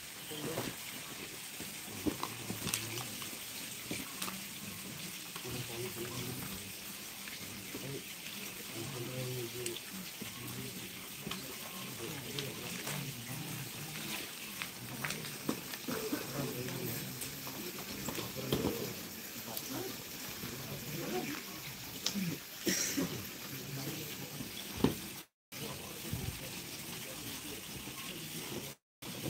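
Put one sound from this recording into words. A crowd of men murmurs and chants softly together outdoors.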